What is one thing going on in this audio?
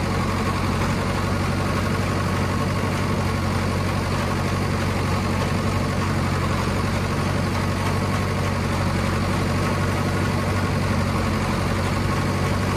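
A diesel farm tractor's engine drones under load.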